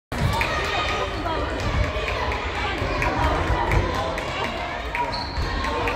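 Children shout and chatter in a large echoing hall.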